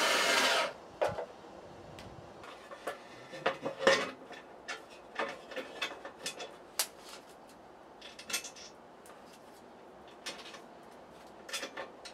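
A metal sheet clanks and knocks against a workbench.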